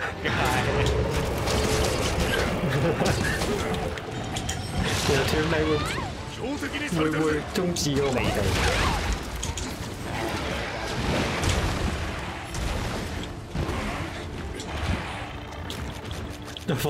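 Blades slash and clang against a monster's hide.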